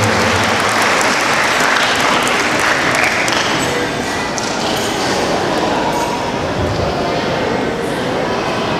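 A group of performers sings loudly through loudspeakers in a large echoing hall.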